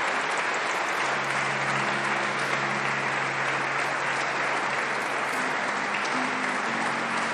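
A cello plays low, sustained notes.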